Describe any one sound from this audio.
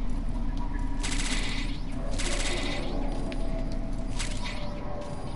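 Short chiming game sounds ring out as items are picked up.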